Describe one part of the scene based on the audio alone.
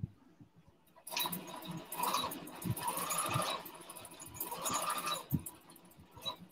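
A sewing machine runs in short bursts.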